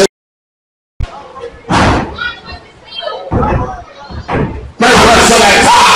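Bodies slam onto a wrestling ring mat with loud thuds.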